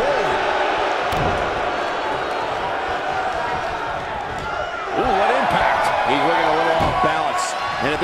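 Bodies slam heavily onto a ring mat with loud thuds.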